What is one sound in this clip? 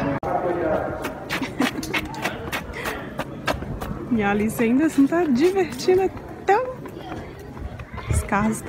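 Footsteps patter on pavement outdoors.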